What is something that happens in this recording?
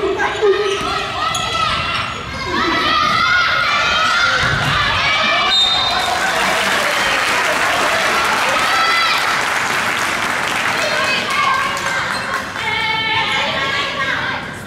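A crowd of young spectators cheers and chants loudly in a large echoing hall.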